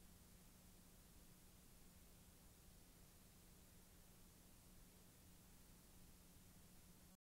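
Static hisses steadily and faintly.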